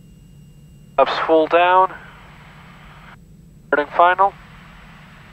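A man speaks briefly over a headset radio.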